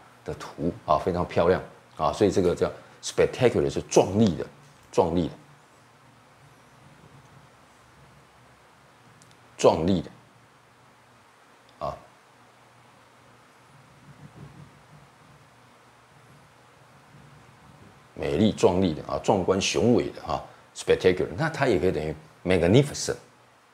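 A middle-aged man speaks calmly and clearly into a close microphone, with long pauses.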